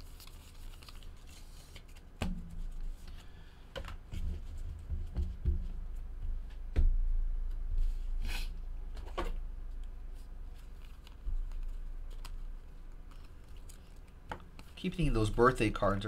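Trading cards flick and rustle as they are shuffled.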